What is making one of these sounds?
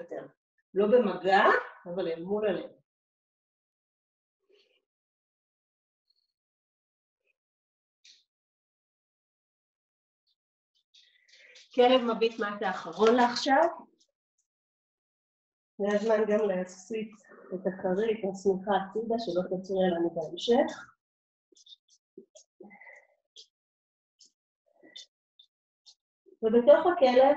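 A woman speaks calmly and clearly, as if guiding a class, close by.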